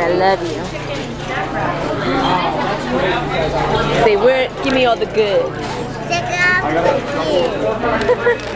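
A crowd of people chatters in a busy echoing hall.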